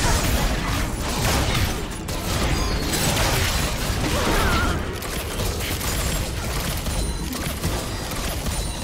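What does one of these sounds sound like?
Game characters' weapons strike in quick hits.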